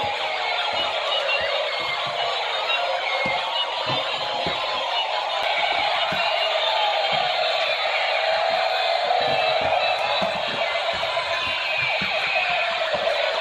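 Plastic toy wheels rattle and roll across a hard floor.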